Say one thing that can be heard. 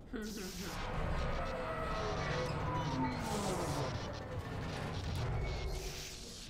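A young woman talks with animation.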